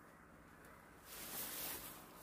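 Leafy plants rustle as they are handled.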